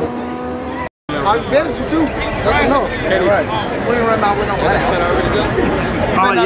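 A crowd of men talk and shout close by outdoors.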